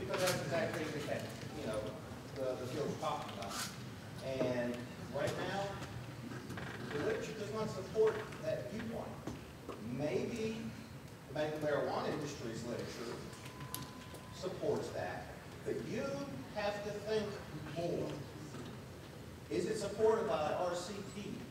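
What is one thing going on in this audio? A man lectures over a microphone and loudspeakers in a large echoing hall.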